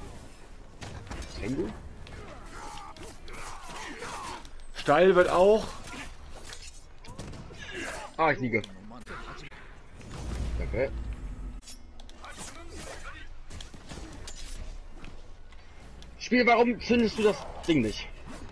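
Swords swish and clash in a fast fight.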